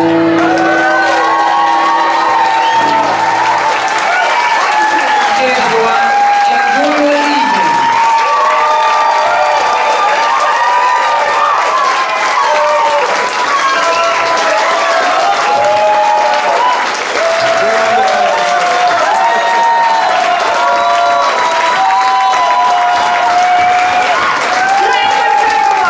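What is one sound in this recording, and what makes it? A lively crowd of men and women chatters and calls out loudly nearby.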